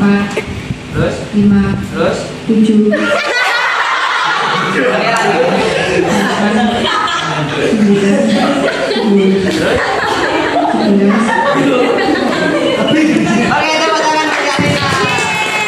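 A young woman sings into a microphone through a loudspeaker.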